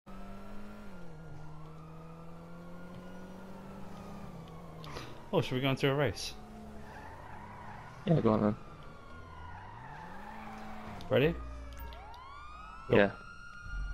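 A small car engine hums steadily, its pitch rising and falling as the car drives.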